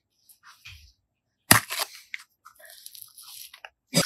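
A plastic egg pops open with a snap.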